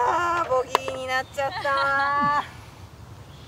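A young woman exclaims with animation close by.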